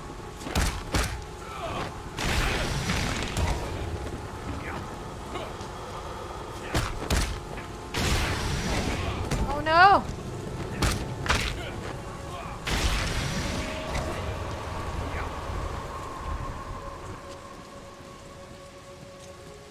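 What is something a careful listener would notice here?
A young woman talks into a microphone with animation.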